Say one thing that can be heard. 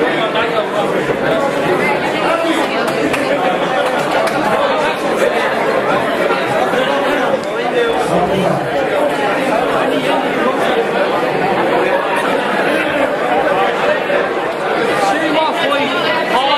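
A crowd chatters loudly in a large echoing hall.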